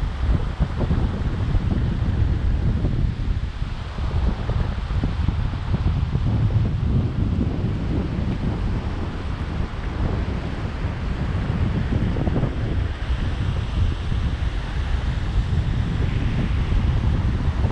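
Shallow water laps and splashes gently.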